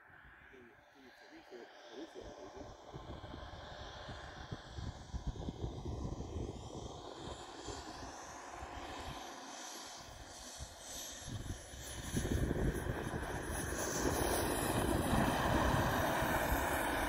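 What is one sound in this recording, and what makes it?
A small model plane engine buzzes high overhead, then roars past close by.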